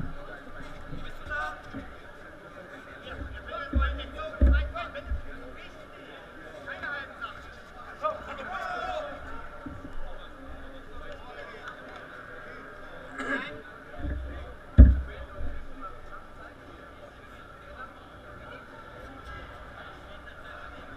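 A crowd talks and cheers in a large echoing hall.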